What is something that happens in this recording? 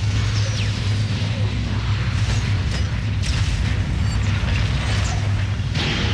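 Laser weapons zap in quick bursts.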